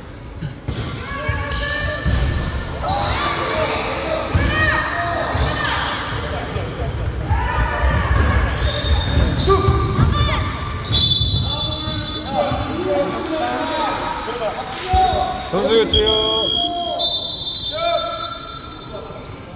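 Children shout and call out across an echoing hall.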